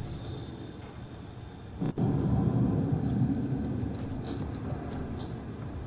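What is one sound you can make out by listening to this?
Heavy footsteps clank on a metal walkway.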